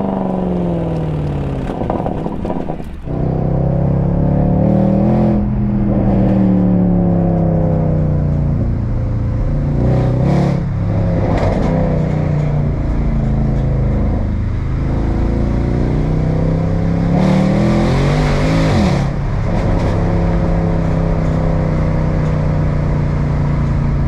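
A car engine roars loudly from inside, rising and falling as the driver shifts gears.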